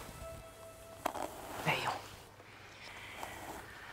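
A brush strokes through hair.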